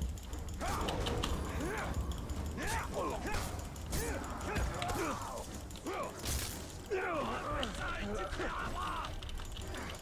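Swords clash in a fight.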